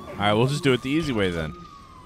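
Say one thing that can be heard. A laser blast zaps.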